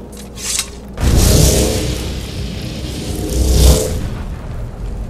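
A magical whoosh swells loudly and then fades.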